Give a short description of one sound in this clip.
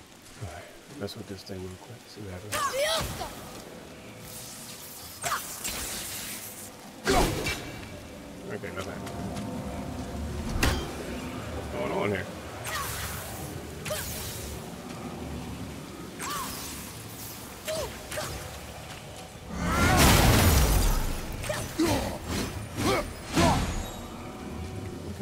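Heavy blows and magical bursts crash in a video game fight.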